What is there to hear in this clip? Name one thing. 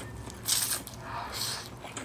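A woman chews wetly close to a microphone.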